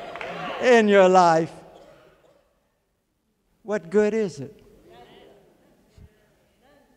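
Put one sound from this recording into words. A man preaches with emphasis through a microphone in a large echoing hall.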